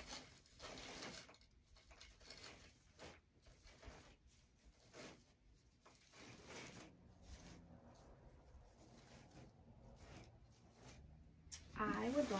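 Artificial flowers and foliage rustle as they are handled.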